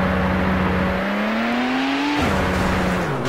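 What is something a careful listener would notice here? A car engine whines higher as it revs.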